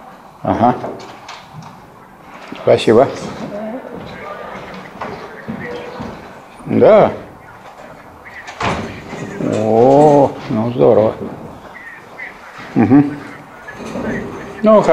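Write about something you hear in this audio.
An elderly man speaks calmly in a room with some echo.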